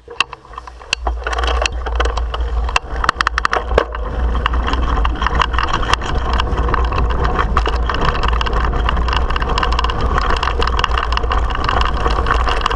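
Wind buffets the microphone with a low, rough rumble outdoors.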